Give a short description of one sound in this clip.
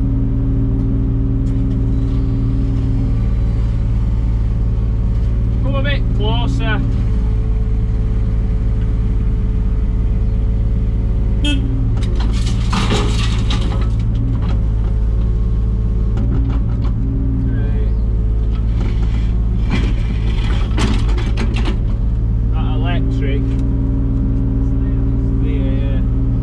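A digger's diesel engine rumbles steadily close by.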